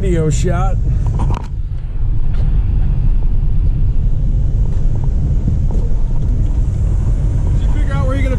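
An engine rumbles steadily inside a vehicle cab.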